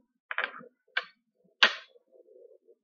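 A bottle cap clicks and pops open.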